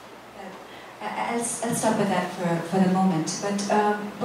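A woman speaks calmly and clearly into a microphone.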